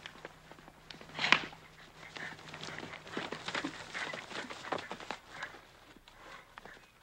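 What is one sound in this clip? A horse gallops over dry ground.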